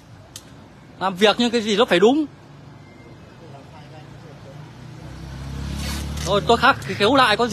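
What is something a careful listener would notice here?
A man speaks nearby with animation.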